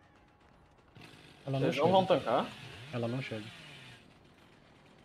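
A chainsaw revs loudly.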